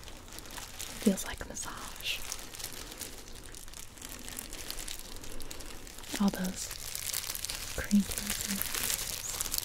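A young woman speaks softly, close to a binaural microphone.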